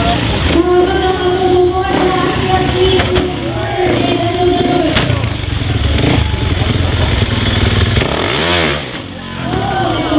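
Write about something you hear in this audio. A motorcycle engine idles and revs loudly nearby.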